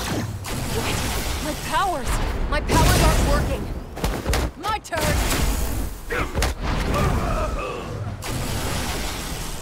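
Magic blasts crackle and boom.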